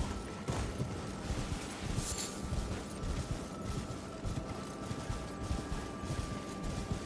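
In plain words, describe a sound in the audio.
A horse gallops over grass with rhythmic hoofbeats.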